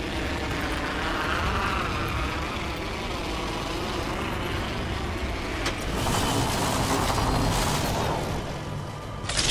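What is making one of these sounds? Wind rushes loudly during a fast fall through the air.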